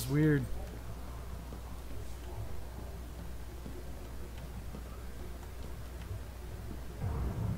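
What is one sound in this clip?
Footsteps thud softly on a metal floor.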